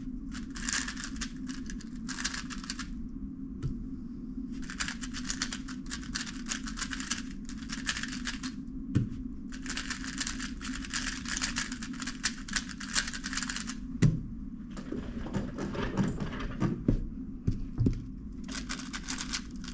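A puzzle cube clicks and rattles rapidly as it is turned.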